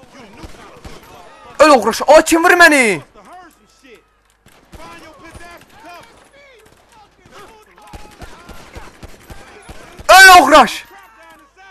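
Pistol shots crack nearby.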